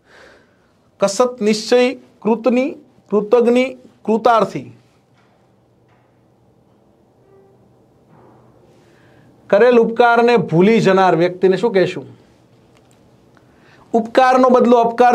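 A middle-aged man speaks with animation close to a microphone, pausing between phrases.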